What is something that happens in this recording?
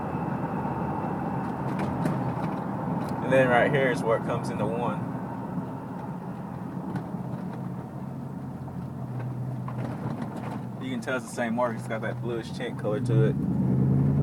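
A car engine hums steadily while tyres roll along a paved road.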